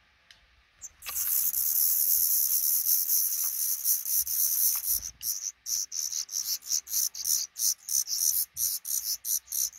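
Baby birds cheep loudly and shrilly in a rapid, pulsing chorus.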